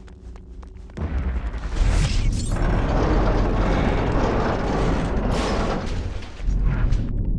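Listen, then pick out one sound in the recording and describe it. Metal pipes rumble and clank as they shift into place.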